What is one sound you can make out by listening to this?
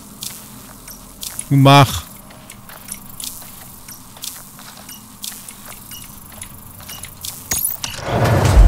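Short electronic clicks and beeps sound in quick succession.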